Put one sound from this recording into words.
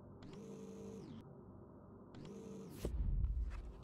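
A motorised mechanism whirs in short bursts.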